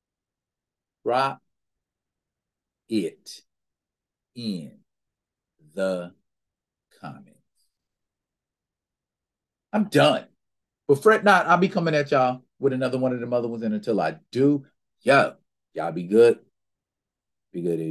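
A man talks with animation into a close microphone, pausing often.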